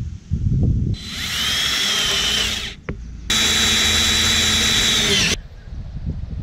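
A power drill whirs in two bursts, driving into wood.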